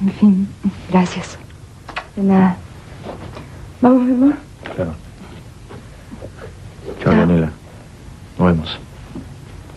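A woman speaks with emotion, close by.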